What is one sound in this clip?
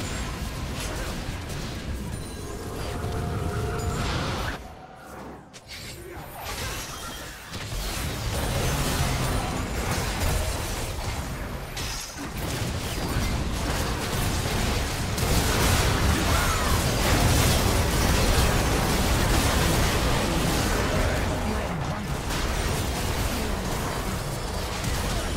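Fantasy spells whoosh and blast in a busy game battle.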